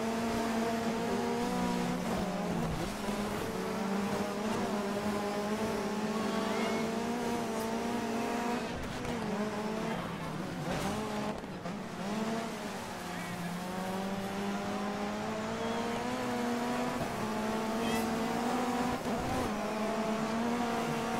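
Tyres skid and hiss on snow and ice.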